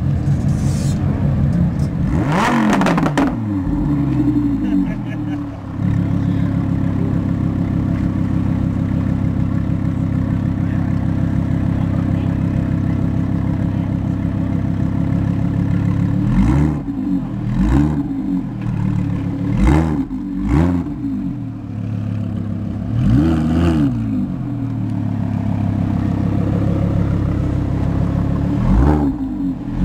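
A sports car engine idles with a deep, loud rumble.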